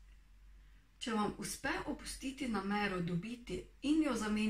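A young woman reads aloud calmly, close to a microphone.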